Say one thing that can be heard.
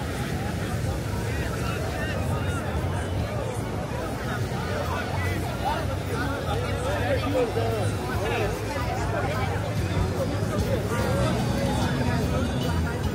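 Wind blows steadily.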